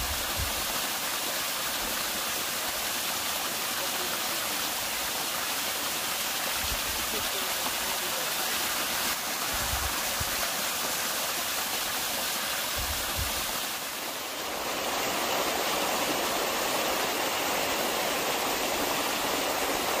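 A waterfall splashes steadily over rocks close by.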